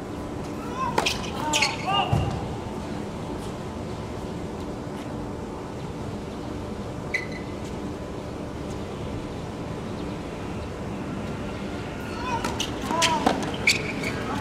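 A tennis ball is struck with a racket with sharp pops.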